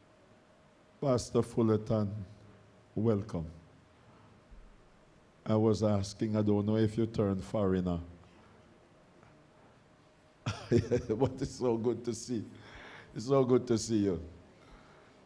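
An elderly man preaches with animation through a microphone and loudspeakers, in bursts with pauses.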